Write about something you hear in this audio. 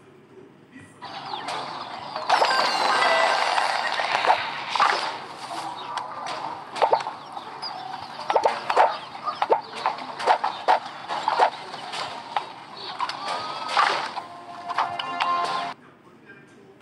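Game sound effects chime and click in quick bursts.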